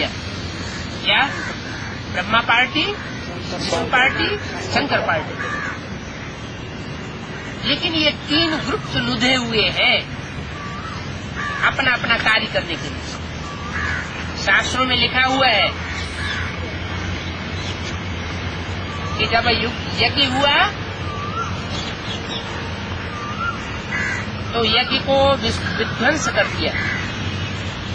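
An elderly man speaks calmly in bursts, close up, with pauses between phrases.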